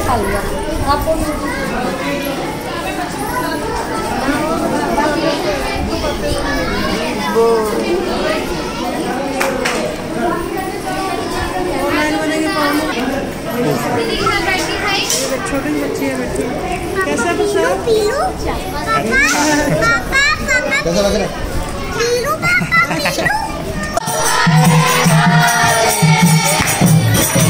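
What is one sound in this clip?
Young girls chatter and talk nearby.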